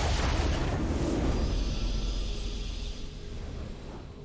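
A triumphant game fanfare plays.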